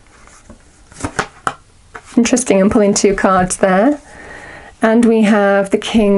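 Playing cards are shuffled, snapping softly against each other.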